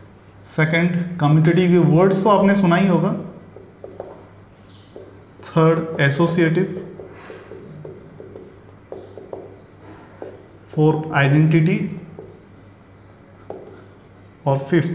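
A man speaks calmly close to a microphone, in short phrases with pauses.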